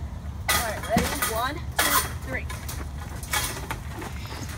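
A metal cage rattles and clanks.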